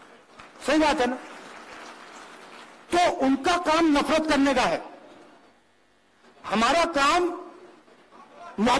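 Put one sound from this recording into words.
A man speaks with animation into a microphone over loudspeakers, with pauses between phrases.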